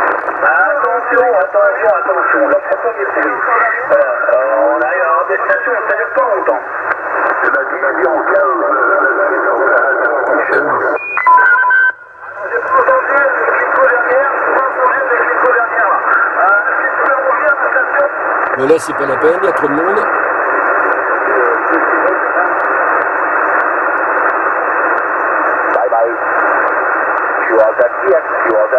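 A man talks through a radio loudspeaker, thin and crackly.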